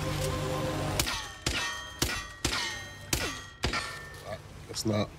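Gunshots ring out against a metal door in quick succession.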